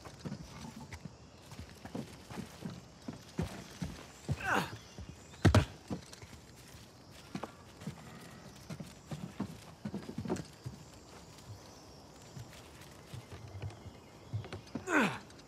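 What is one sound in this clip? Footsteps crunch on wooden boards and leaves.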